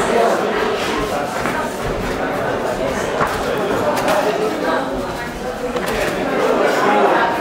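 A crowd shouts and cheers in a large echoing hall.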